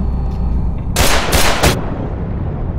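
A pistol fires several loud shots.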